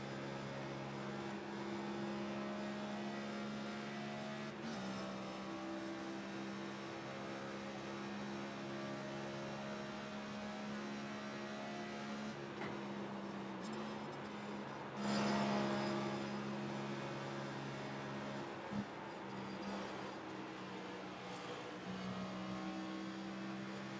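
A race car engine drones loudly at high, steady revs, with slight shifts in pitch.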